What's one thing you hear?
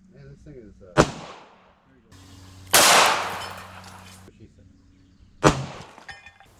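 Bullets clang against a metal plate.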